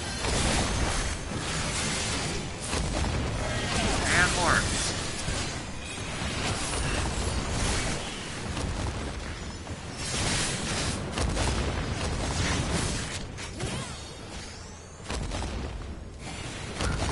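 Battle sound effects clash and whoosh.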